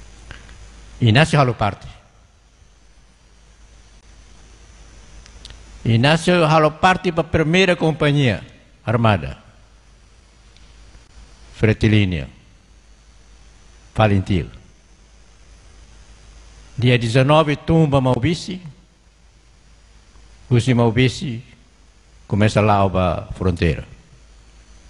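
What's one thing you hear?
An elderly man speaks slowly into a microphone, in short phrases with long pauses.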